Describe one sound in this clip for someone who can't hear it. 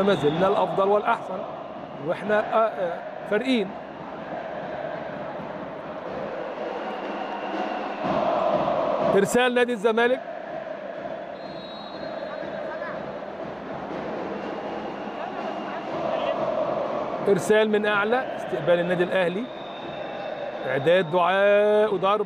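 A crowd murmurs steadily in a large echoing hall.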